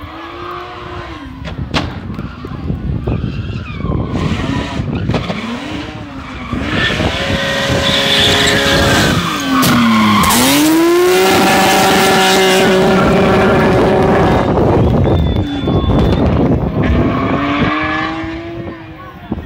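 A rally car engine revs hard, roars past close by and then fades into the distance.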